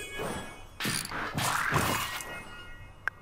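A bright game chime rings as an item is crafted.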